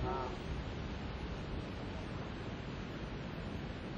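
A fishing reel clicks as it turns.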